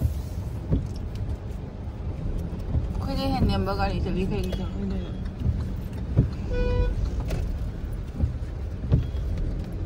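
A windshield wiper sweeps across wet glass.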